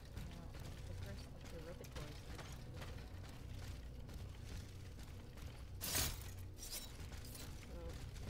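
Footsteps scuff on gravel.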